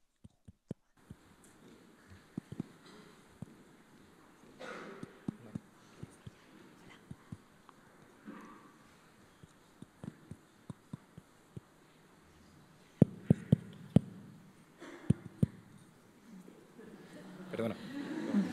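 An audience murmurs quietly in a large echoing hall.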